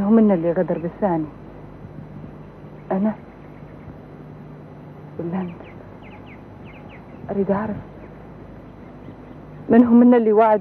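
A woman speaks in short, distressed bursts with long pauses.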